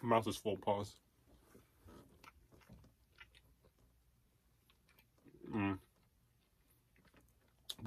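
A young man chews food noisily.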